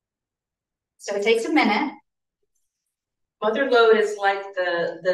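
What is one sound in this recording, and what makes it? A woman speaks with animation, heard from a distance.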